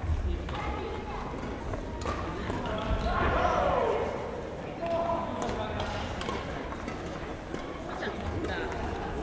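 Shuttlecocks are struck with sharp pops of badminton rackets in a large echoing hall.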